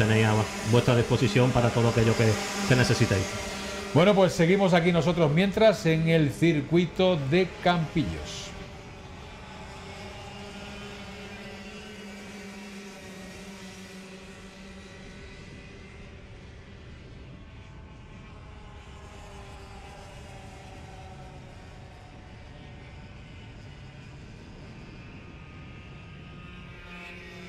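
Kart engines drone and whine as karts race by.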